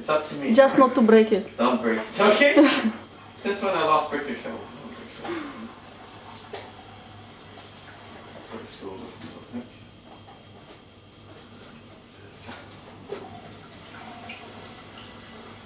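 Water runs from a tap into a kettle.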